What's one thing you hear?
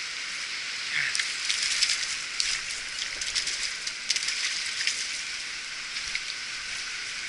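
A fish splashes in shallow water.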